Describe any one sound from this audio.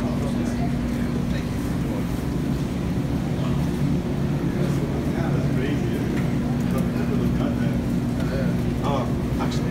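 An older man answers briefly nearby.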